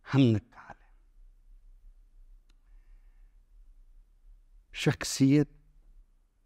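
An older man speaks calmly and close to a microphone, in short bursts.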